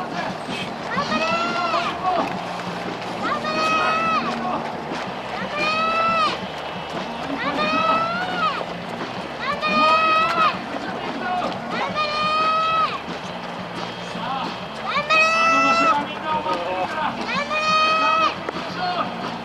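Many runners' footsteps patter on a paved road.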